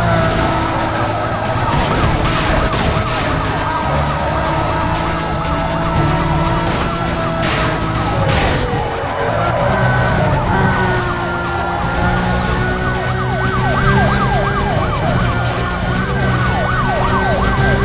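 A sports car engine roars at high speed.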